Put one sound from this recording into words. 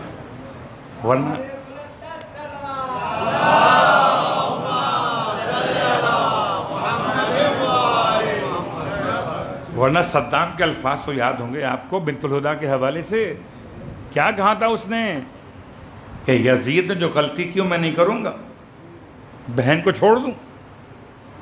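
A man speaks into a microphone in bursts, with lively pauses.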